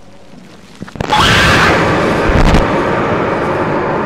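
A young man cries out in shock.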